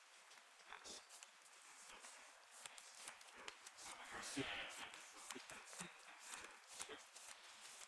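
Cards riffle and shuffle in hands.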